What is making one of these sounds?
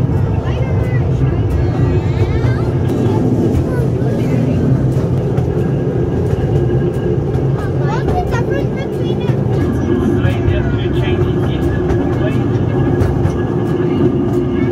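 A young child talks softly close by.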